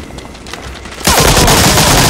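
A rapid burst of gunfire rings out close by.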